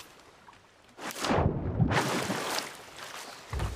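Water splashes loudly as a swimmer moves through it.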